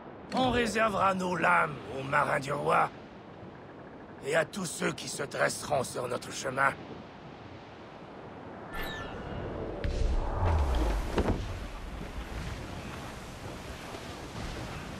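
Wind blows through the sails and rigging.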